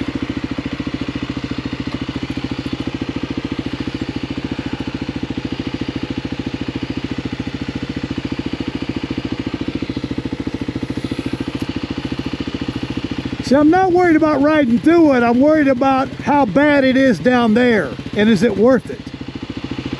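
A motorcycle engine idles with a steady, low throb.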